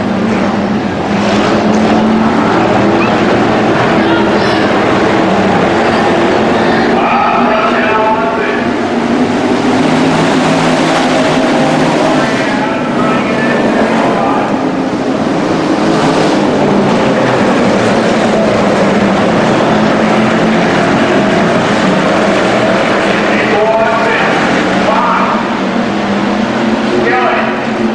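Race car engines roar loudly and rev up and down.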